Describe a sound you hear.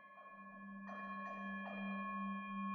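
A wooden mallet strikes a metal singing bowl.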